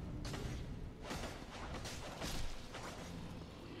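Swords clang and strike against armour.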